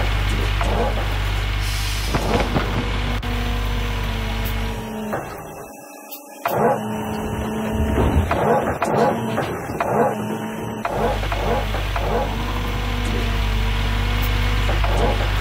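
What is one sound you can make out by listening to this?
Dirt and rocks pour and rumble into a bucket.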